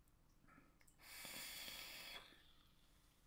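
A man draws a long breath through a vaping device.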